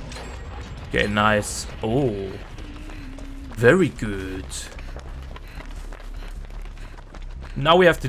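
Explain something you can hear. Footsteps run quickly over grass and leaves.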